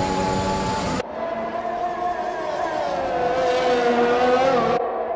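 A racing car engine whines as the car speeds past, its pitch falling and rising.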